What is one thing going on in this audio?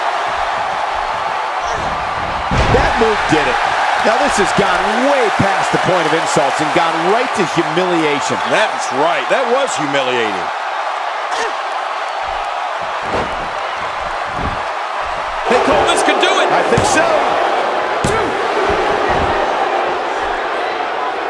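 A large crowd roars and cheers in a big arena.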